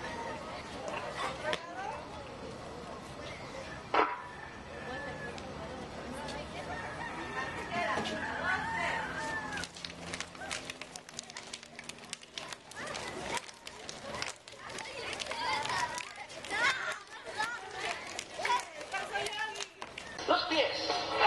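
A crowd of children chatters and calls out nearby outdoors.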